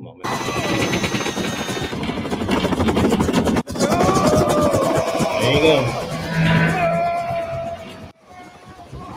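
A helicopter roars amid loud film action sounds.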